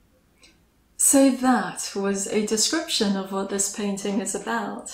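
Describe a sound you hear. A young woman speaks calmly and clearly close to the microphone.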